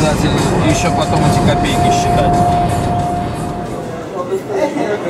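A car drives along a highway with a steady tyre roar.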